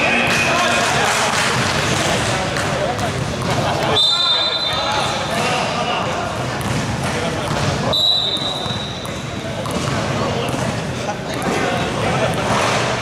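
Young men call out to each other across an echoing court.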